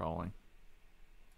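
A man speaks briefly and calmly, close to a microphone.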